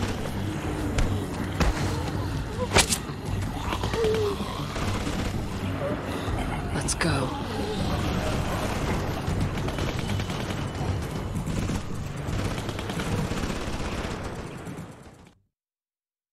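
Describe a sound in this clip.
A crowd of zombies groans and snarls close by.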